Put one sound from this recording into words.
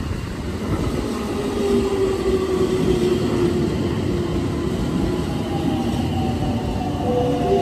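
Train brakes squeal as the train slows.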